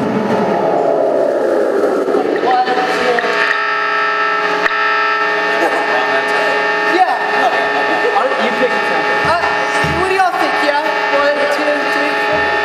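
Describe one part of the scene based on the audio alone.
An electronic instrument plays steady droning notes.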